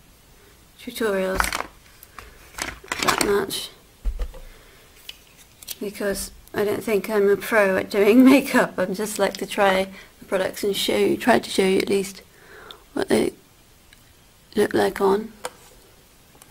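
A young woman talks calmly close to the microphone.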